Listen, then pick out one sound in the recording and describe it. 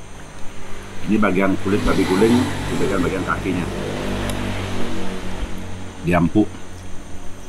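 A middle-aged man talks with animation close by.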